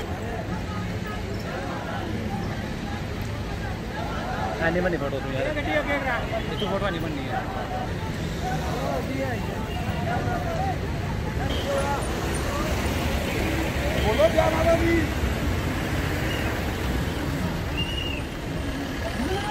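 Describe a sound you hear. A crowd of people chatters and calls out nearby.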